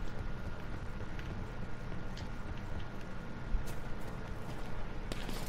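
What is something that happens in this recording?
Footsteps thud across a wooden floor.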